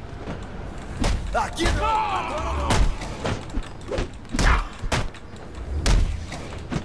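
Heavy punches thud in a fight.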